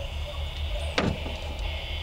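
A throwing star thuds sharply into a wooden board.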